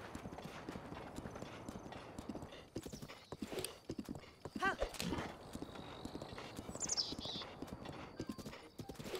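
Hooves gallop quickly over soft ground.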